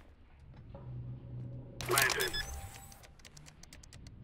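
Keypad buttons beep and click as a device is armed.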